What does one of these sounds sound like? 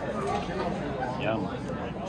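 Liquid pours into a cup.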